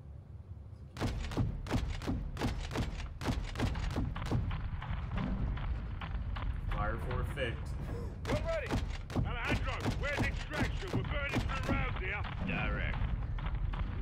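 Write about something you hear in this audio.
Heavy gunfire pounds in rapid bursts.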